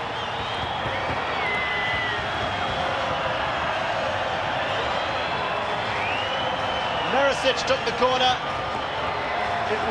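A large crowd cheers and roars in a big outdoor stadium.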